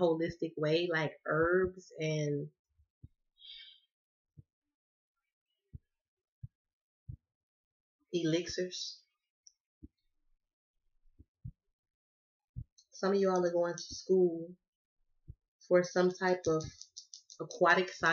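A woman talks calmly and close by, with pauses.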